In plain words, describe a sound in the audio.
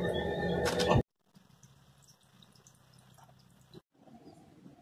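Water trickles and drips from a small fountain.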